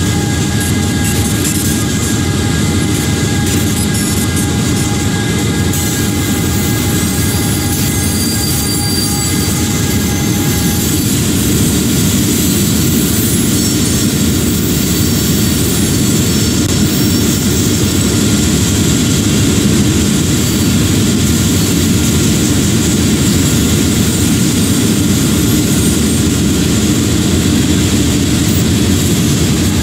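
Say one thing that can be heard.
A diesel locomotive engine rumbles steadily as a train rolls along.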